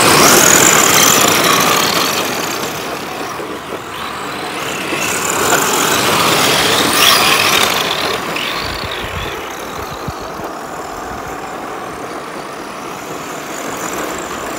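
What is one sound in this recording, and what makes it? Small electric model car motors whine at high pitch as the cars race by.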